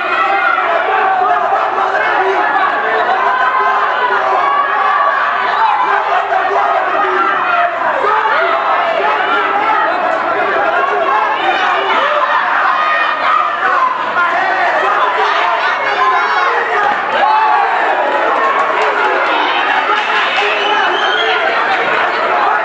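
A crowd cheers and shouts loudly throughout.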